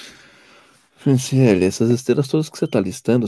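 A man speaks calmly and close up, heard through a microphone.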